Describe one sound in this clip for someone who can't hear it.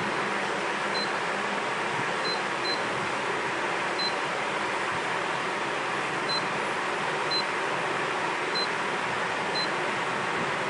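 An electronic device gives short high beeps as its buttons are pressed.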